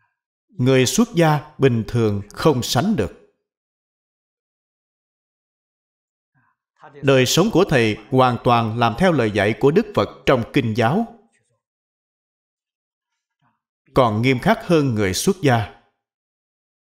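An elderly man speaks calmly and clearly into a microphone, pausing between phrases.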